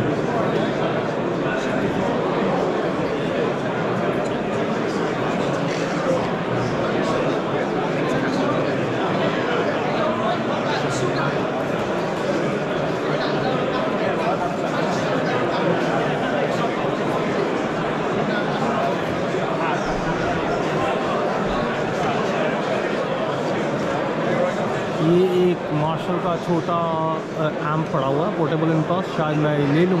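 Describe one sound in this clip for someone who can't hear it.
A crowd murmurs and chatters all around in a large, busy hall.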